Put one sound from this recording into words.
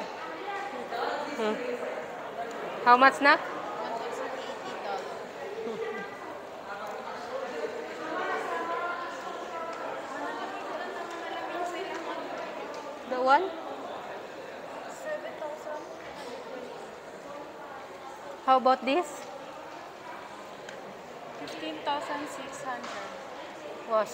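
People talk in the background of a large, echoing indoor space.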